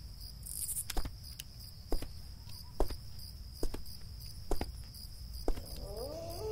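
Slow footsteps fall on a hard floor.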